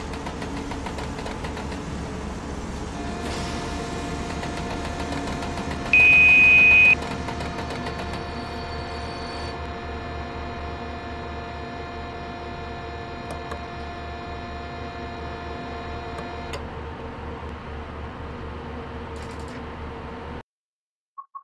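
An electric locomotive hums steadily while running.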